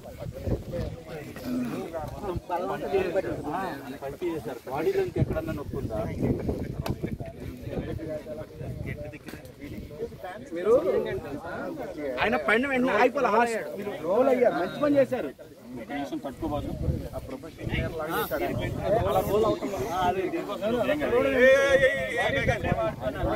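Several young men talk over one another urgently nearby, outdoors.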